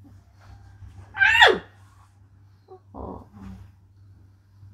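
A young woman cries out close by in a high, wailing voice.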